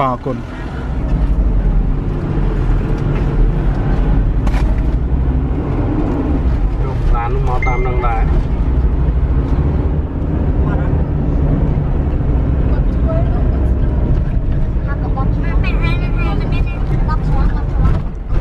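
A vehicle engine rumbles steadily on a rough road.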